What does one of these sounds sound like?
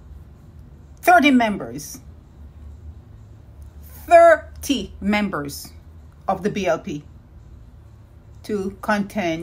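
A woman speaks calmly and close up, in short bursts.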